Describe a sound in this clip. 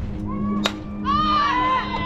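A bat hits a softball with a sharp crack.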